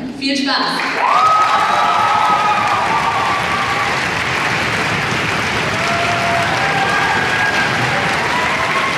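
A crowd whoops and cheers.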